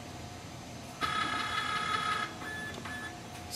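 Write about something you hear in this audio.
A scanner motor whirs steadily.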